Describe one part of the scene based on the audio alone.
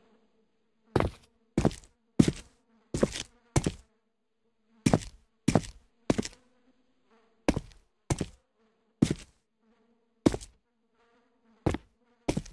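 Footsteps thud heavily on a hard floor at a steady walking pace.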